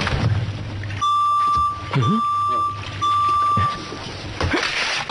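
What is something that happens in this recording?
A rice cooker beeps three times.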